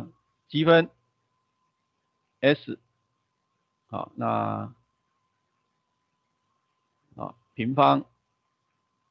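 A young man speaks in short, lively phrases.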